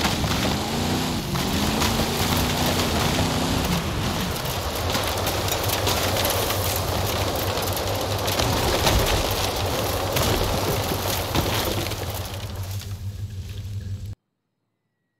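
A car engine roars and revs as the car climbs a steep slope.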